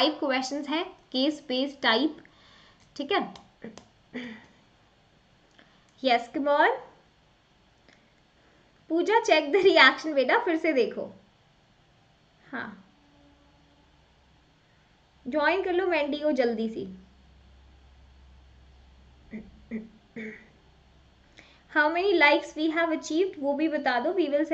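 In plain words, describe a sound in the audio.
A young woman speaks calmly and close to a microphone, in bursts with pauses.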